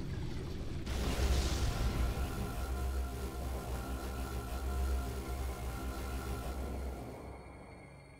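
An energy blast bursts with a loud deep boom.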